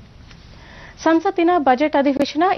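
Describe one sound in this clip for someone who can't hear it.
A woman reads out the news calmly into a microphone.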